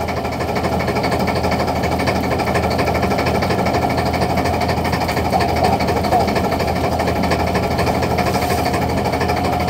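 A line-hauling machine whirs and rattles steadily.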